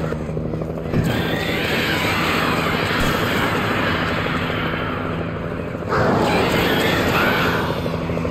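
Gunshots ring out.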